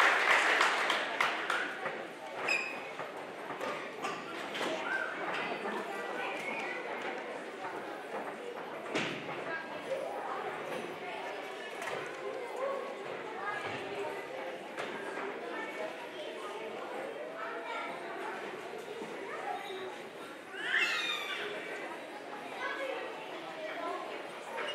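Young children chatter and murmur softly.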